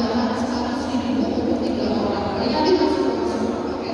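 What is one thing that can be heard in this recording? A second young woman speaks through a microphone in reply.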